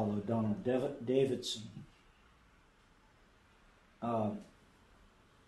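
An elderly man speaks calmly in a slightly echoing room.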